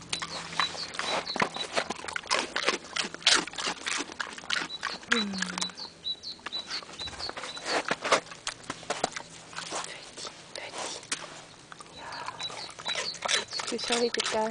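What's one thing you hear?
A pig grunts and snuffles close by.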